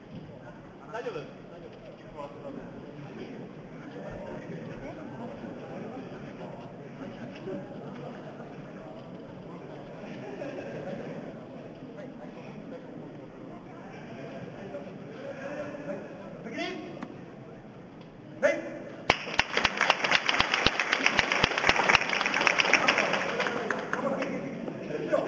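A crowd of children and adults murmurs and chatters in a large echoing hall.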